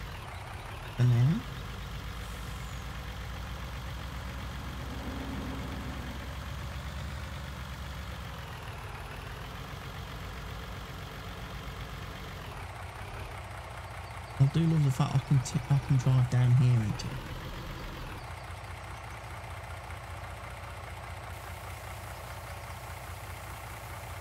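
A heavy truck engine rumbles steadily as it drives.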